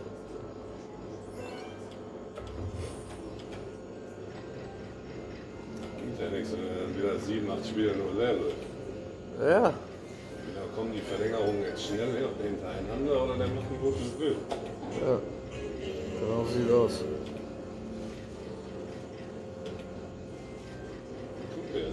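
A slot machine plays tinkling electronic jingles.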